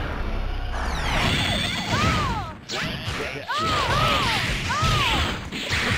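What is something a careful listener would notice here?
Energy beams whoosh and crackle.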